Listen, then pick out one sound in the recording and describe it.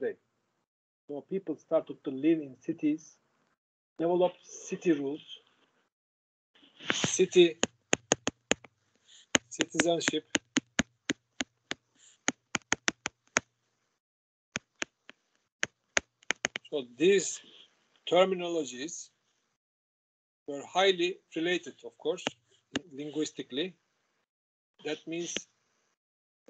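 A man speaks calmly through an online call microphone.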